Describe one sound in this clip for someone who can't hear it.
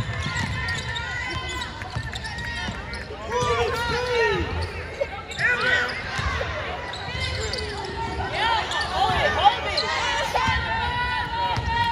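A basketball thumps as it is dribbled.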